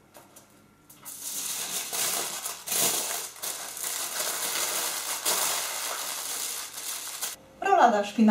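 Aluminium foil crinkles and rustles as it is folded around food.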